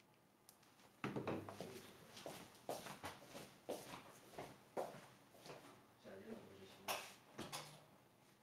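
Footsteps walk across a room and move away.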